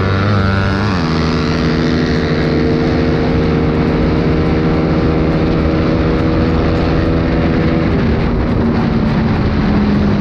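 A motorcycle engine drones loudly up close, shifting pitch as it changes gear.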